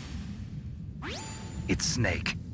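Electronic radio call tones beep and chirp.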